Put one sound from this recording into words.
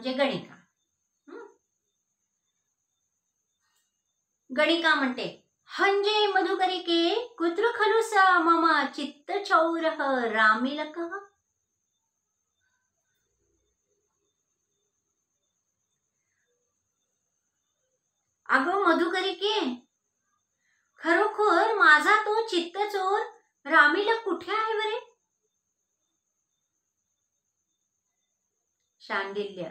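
A middle-aged woman speaks calmly and clearly close by, pausing between phrases.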